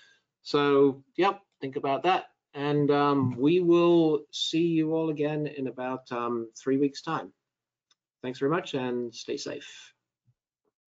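An older man speaks calmly and steadily into a microphone.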